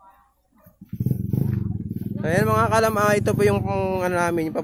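A motorcycle engine idles loudly close by and then revs up with a rising whine.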